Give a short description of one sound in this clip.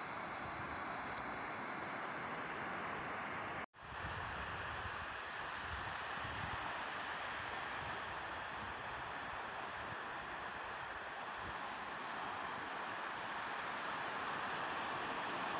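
Small sea waves break and wash up on a sandy beach.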